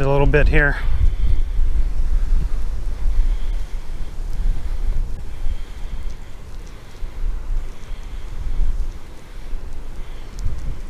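Wind gusts and rumbles across an open outdoor space.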